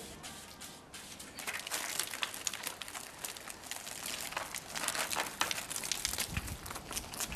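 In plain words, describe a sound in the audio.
Water sprays from a hose onto plants.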